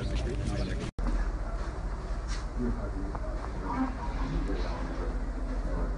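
Several men murmur a prayer quietly.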